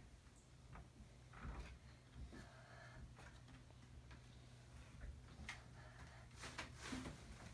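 A small child's feet thump on the wooden ladder rungs of a bed.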